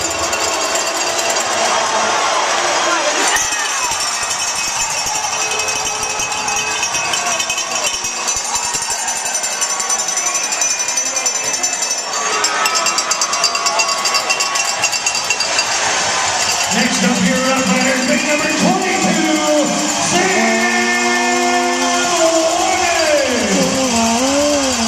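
A crowd of spectators murmurs and cheers in a large echoing arena.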